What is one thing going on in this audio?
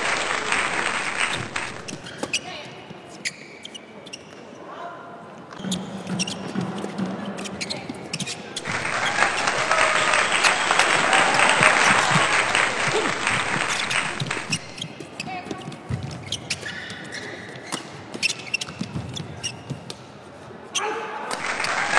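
Rackets smack a shuttlecock back and forth in quick, sharp hits.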